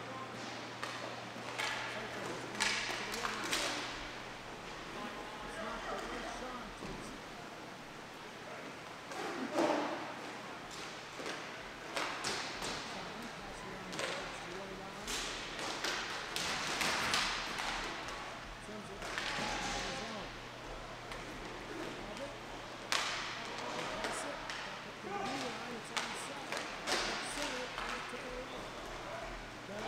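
Inline skate wheels roll and scrape across a hard floor in a large echoing hall.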